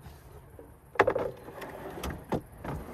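A wooden bed frame slides and knocks as it is pulled out.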